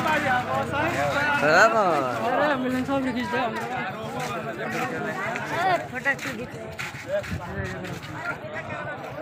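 A crowd of men talk and shout loudly close by, outdoors.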